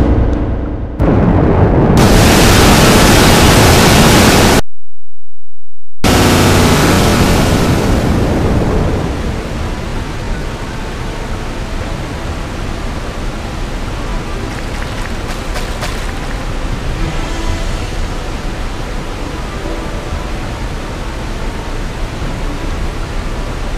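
Water roars and rushes in a loud, steady torrent.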